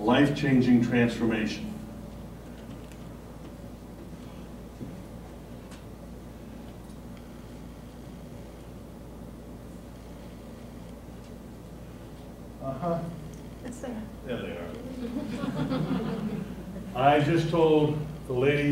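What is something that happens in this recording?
A middle-aged man speaks calmly to an audience.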